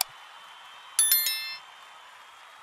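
A bell chimes brightly and quickly fades.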